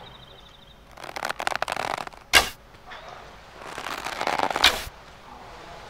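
A wooden bow creaks as its string is drawn back.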